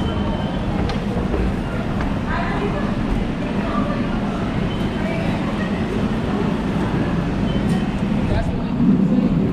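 Footsteps echo through a busy indoor hall.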